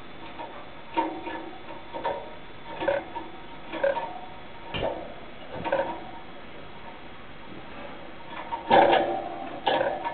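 A small bird chirps in short bursts close by.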